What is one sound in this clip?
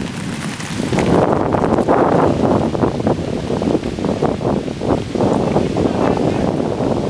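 A river rushes nearby.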